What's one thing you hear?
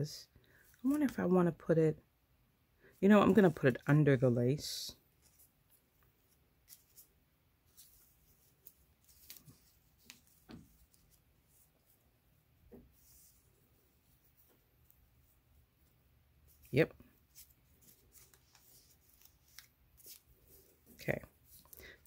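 Paper rustles softly as hands fold it.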